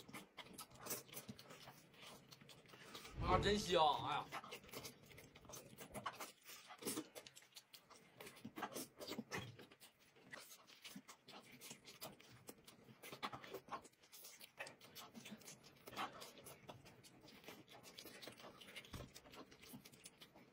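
A young woman slurps noodles loudly up close.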